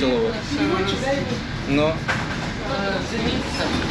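Women talk cheerfully close by.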